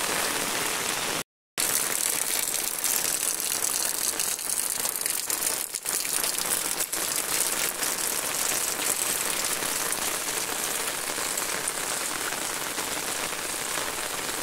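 Steady rain patters onto a wet road outdoors.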